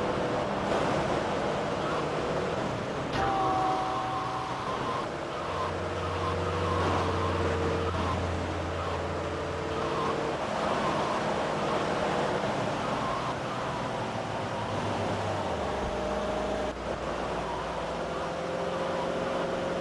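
A car engine hums steadily as a vehicle drives along a road.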